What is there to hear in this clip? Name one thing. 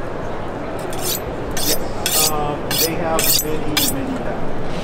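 A knife scrapes quickly along a sharpening steel.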